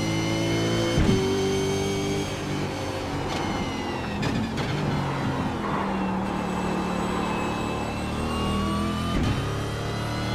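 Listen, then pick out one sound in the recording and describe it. Gear changes crack sharply between revs.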